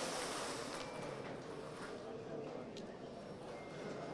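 Balls rattle in a turning lottery drum.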